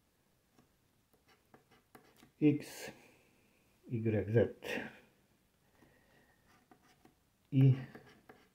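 A coin scratches briskly across a card.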